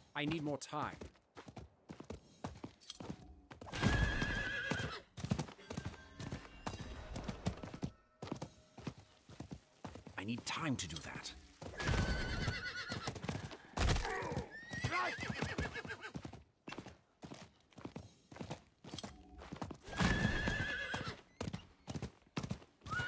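A horse gallops steadily, hooves thudding on dirt.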